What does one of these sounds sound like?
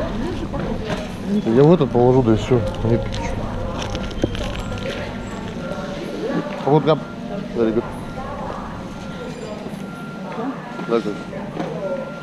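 A shopping trolley's wheels rattle as it rolls along.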